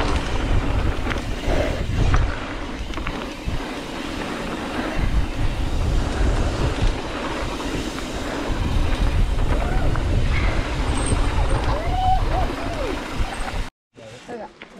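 Bike tyres crunch and roll over a dirt trail.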